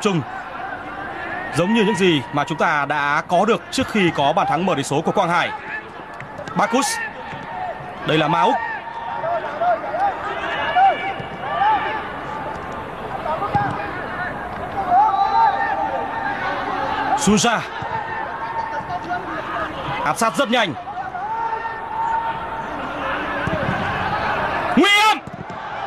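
A large stadium crowd roars steadily, with loud whistling over it.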